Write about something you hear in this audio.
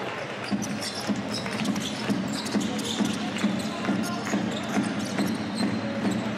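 A basketball bounces steadily on a hard court in a large echoing hall.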